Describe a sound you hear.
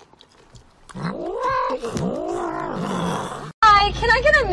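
A cat meows loudly, long and drawn out.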